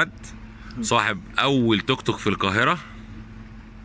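An older man laughs heartily.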